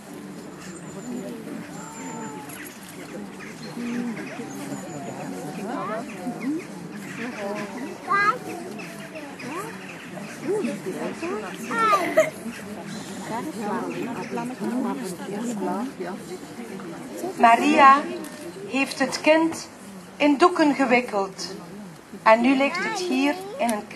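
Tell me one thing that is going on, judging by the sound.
A young girl sings nearby.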